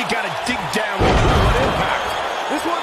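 A body slams onto a ring mat with a heavy thud.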